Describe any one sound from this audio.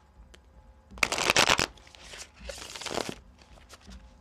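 A deck of cards is shuffled by hand with quick riffling rustles.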